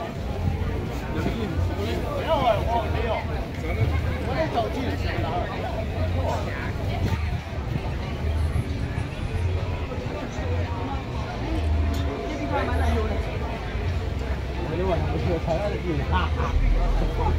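A crowd of adults chatters all around outdoors.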